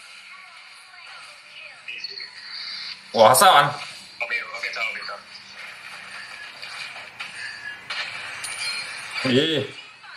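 Game sound effects clash and chime throughout.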